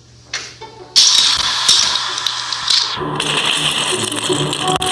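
Plastic toy bricks clatter and rattle as hands rummage through a pile.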